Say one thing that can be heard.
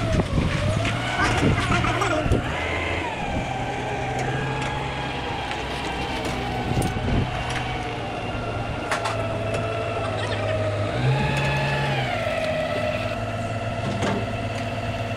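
A forklift engine hums steadily and revs up now and then.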